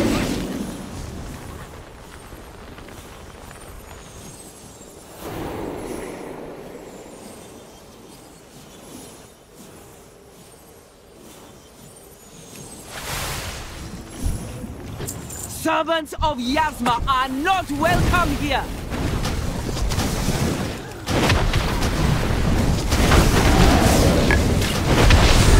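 Combat sound effects of spells and blows clash and whoosh.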